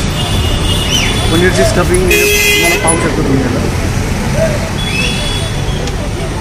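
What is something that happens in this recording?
Street traffic hums in the background.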